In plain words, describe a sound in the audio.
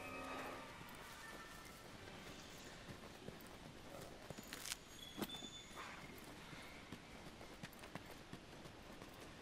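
Footsteps crunch over soft ground.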